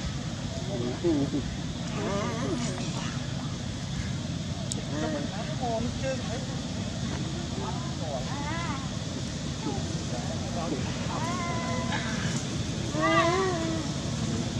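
Young monkeys squeal and chirp in short high cries.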